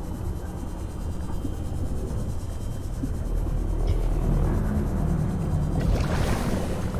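A small submarine's engine hums low and steadily underwater.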